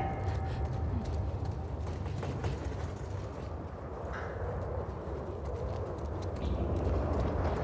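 Footsteps walk on a hard wet floor.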